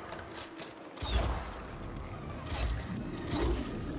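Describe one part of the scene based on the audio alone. A crossbow fires with deep, heavy thuds.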